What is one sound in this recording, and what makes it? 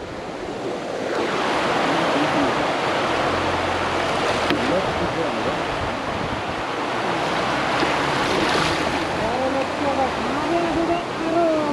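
Water flows and splashes steadily nearby.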